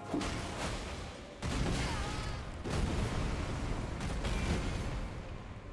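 Heavy weapons strike with loud booming crashes.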